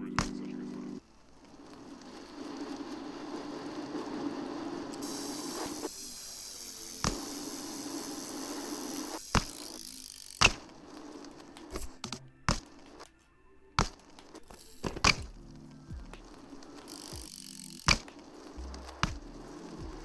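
Bicycle tyres roll and hum over pavement.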